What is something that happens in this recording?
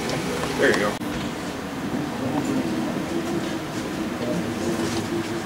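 Men chatter in the background of a busy room.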